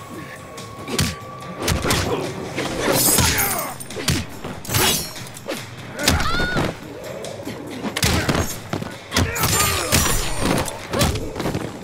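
Whooshing swipes cut through the air.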